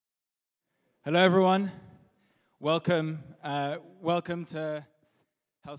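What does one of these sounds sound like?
A man speaks with animation into a microphone over loudspeakers in a large hall.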